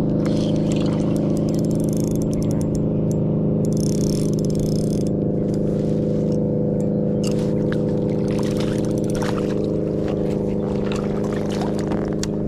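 A hooked bass splashes at the water's surface.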